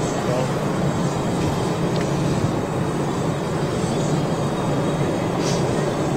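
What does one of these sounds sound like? A jet airliner's engines hum and rumble steadily as it taxis slowly close by.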